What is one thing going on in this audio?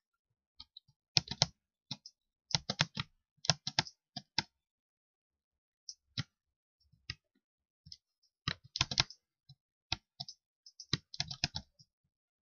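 Blocks are placed with short, quick clicks.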